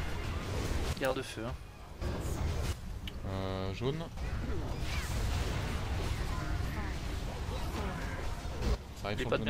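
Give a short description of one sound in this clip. Magic spells crackle and whoosh during a battle.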